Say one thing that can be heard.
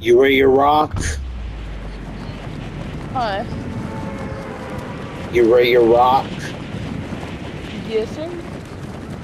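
Wind rushes past during a fall through the air.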